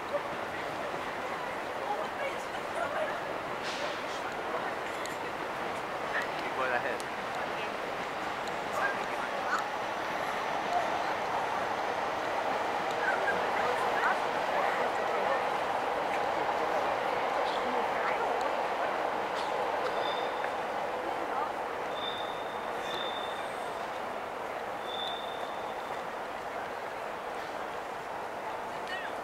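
A crowd of people murmurs and chatters outdoors at a distance.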